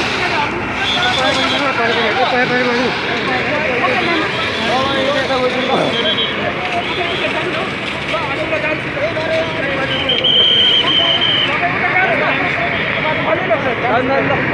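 A crowd of men talks excitedly nearby outdoors.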